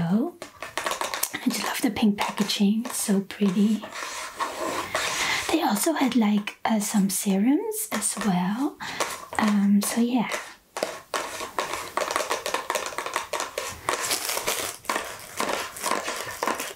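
Long fingernails tap and scratch quickly on cardboard boxes, close by.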